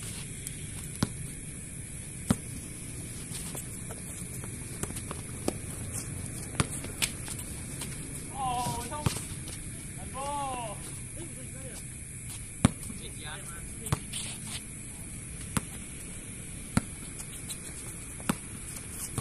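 A basketball bounces on a hard court outdoors.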